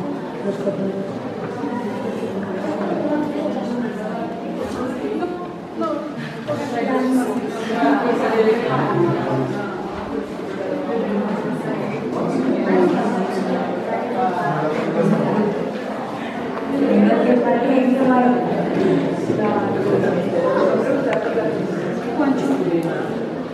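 A crowd of adult men and women chatter nearby in an echoing room.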